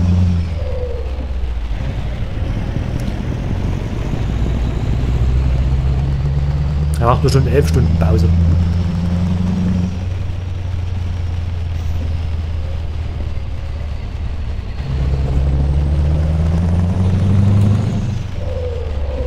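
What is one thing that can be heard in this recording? A truck engine hums low and steady, rising and falling with speed.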